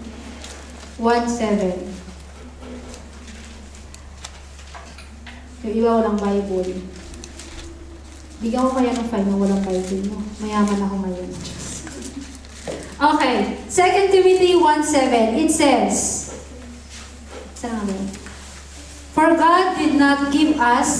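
A young woman sings slowly into a microphone over a loudspeaker in an echoing hall.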